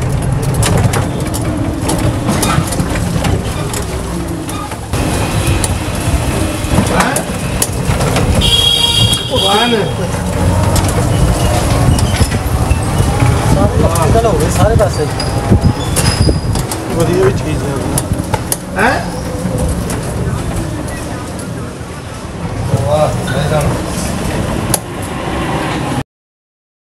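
A small open vehicle rattles and clatters over a rough, bumpy lane.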